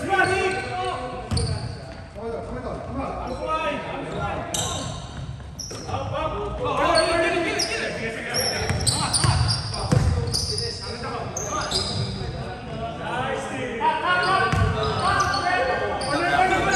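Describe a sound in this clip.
Men shout and call out across the gym.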